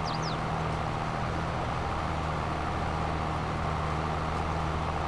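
A cultivator rumbles through the soil.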